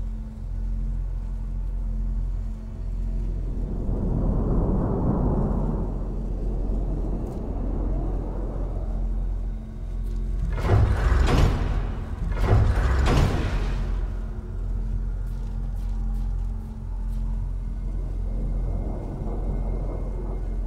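A low magical hum drones steadily.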